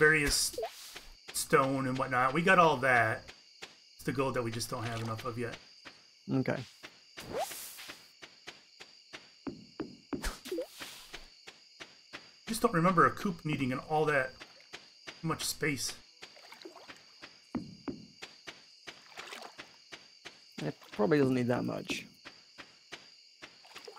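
Footsteps patter steadily across dirt and wooden planks.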